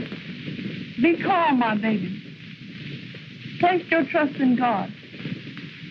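A woman speaks through an old, hissy film soundtrack.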